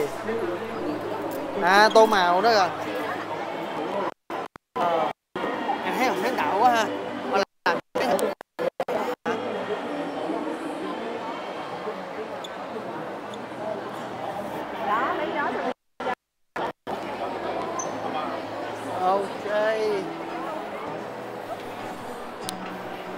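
A crowd of people chatters all around in a busy, echoing hall.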